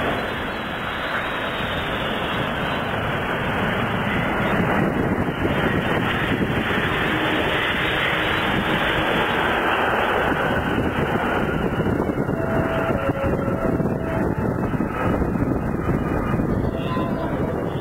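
Jet engines roar loudly as an airliner lands and rolls along a runway.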